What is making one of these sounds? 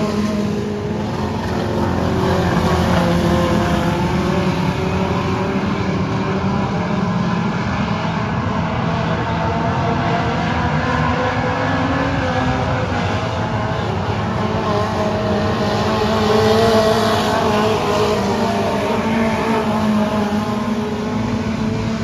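Several race car engines roar loudly and rise and fall in pitch as the cars speed by.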